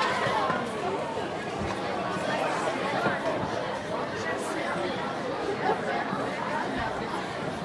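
Musicians play drums and percussion.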